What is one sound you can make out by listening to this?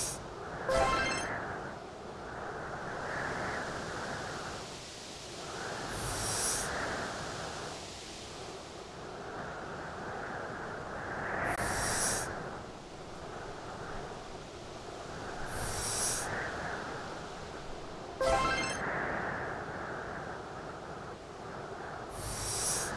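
A heavy boulder scrapes and thuds as it is pushed across ice.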